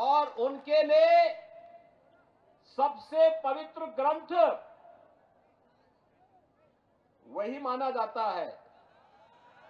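A man speaks forcefully into a microphone, echoing over loudspeakers.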